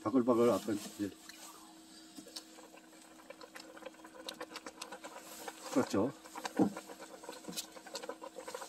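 Water bubbles and simmers in a pot.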